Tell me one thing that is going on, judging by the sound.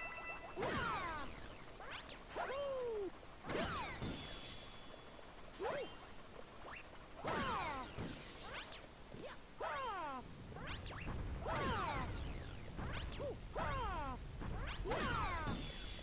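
Bright twinkling chimes sparkle now and then.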